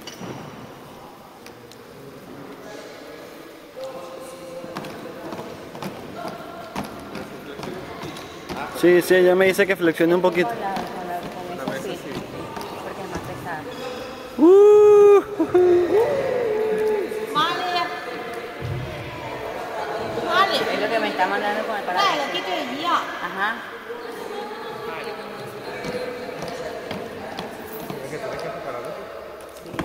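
A wooden table thumps against feet as it is spun and tossed in a large echoing hall.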